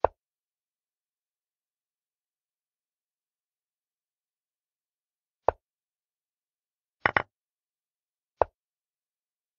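Short digital click sounds mark chess pieces being moved in an online game.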